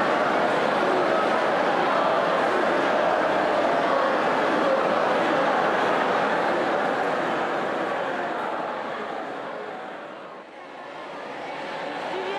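A large crowd murmurs and chatters loudly in an echoing hall.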